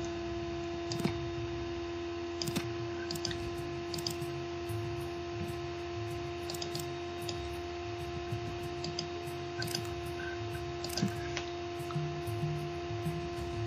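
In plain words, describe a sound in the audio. Sharp menu clicks sound now and then.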